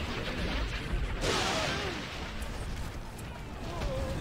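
A burst of magic ice cracks and shimmers.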